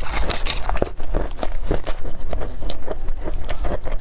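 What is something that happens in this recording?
Pastry crinkles and tears as it is pulled apart by hand close to a microphone.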